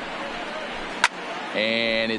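A bat cracks against a ball once.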